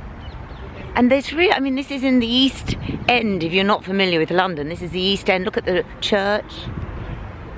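An older woman speaks with animation close to the microphone.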